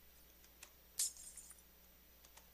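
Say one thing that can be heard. A block cracks and shatters with a short crunch.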